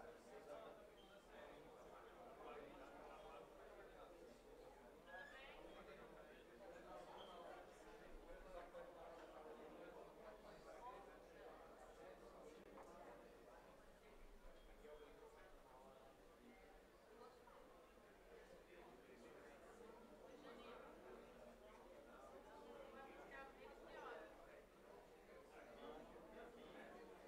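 A crowd of people chatter at a distance in a large echoing hall.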